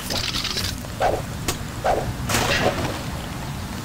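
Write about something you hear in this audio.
A wooden crate is smashed apart with a few heavy blows.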